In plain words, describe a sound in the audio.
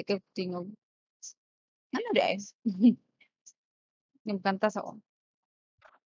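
A young woman speaks close to a microphone in short bursts, calmly.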